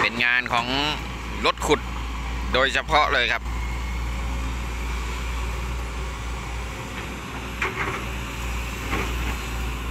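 A diesel hydraulic excavator engine rumbles under load.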